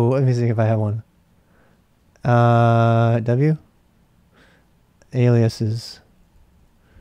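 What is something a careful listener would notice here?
A middle-aged man speaks with drawn-out, sing-song animation close to a microphone.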